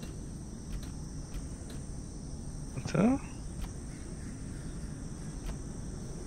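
A metal lever clunks as it is pulled.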